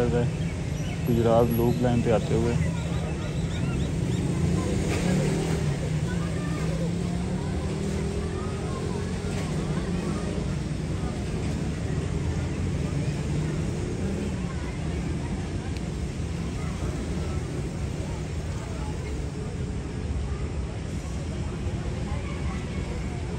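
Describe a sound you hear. A diesel locomotive rumbles steadily as it approaches along the track.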